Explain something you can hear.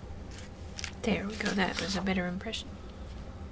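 A sheet of paper rustles as it is lifted.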